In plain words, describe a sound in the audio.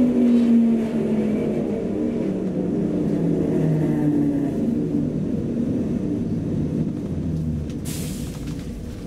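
A train rumbles along and slows down, its motor whining lower and lower.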